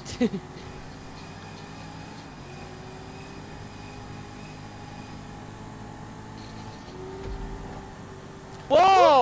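A sports car engine hums steadily at speed.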